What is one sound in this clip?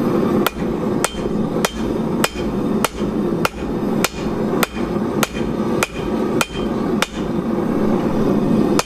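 A forge blower roars steadily.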